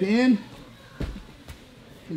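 Bodies thud onto a padded mat.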